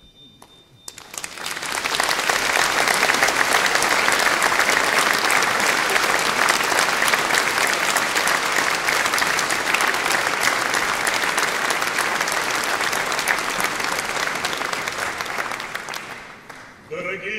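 An audience claps loudly in an echoing hall, then the applause dies away.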